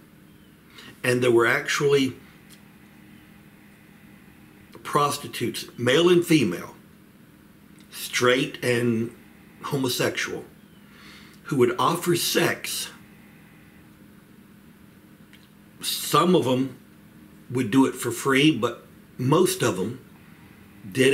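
A middle-aged man speaks calmly and close up, in short bursts with pauses.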